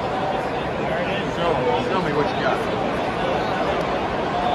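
Nearby fans shout and chant loudly, swelling in excitement.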